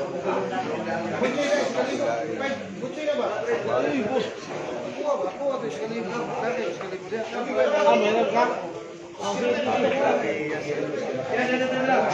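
Pool balls click together.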